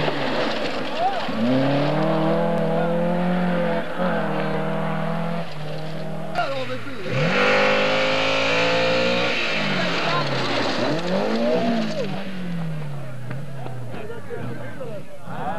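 Rally car engines roar and rev hard, rising and falling in pitch as the cars pass.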